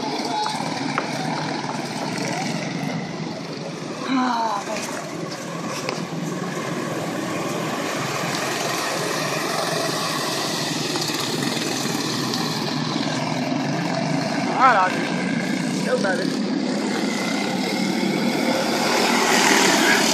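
Small race car engines buzz and whine around a track outdoors.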